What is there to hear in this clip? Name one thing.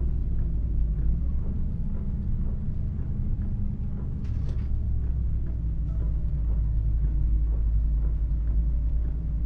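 Windscreen wipers swish back and forth.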